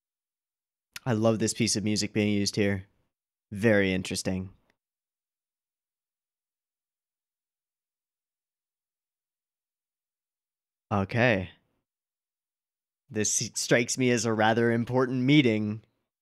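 A young man talks close to a microphone, with animation.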